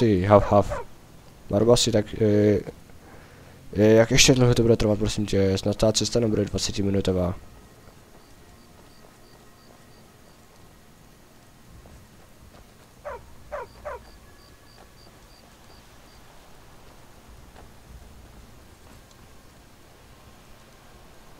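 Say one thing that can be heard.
Footsteps crunch on a rocky path.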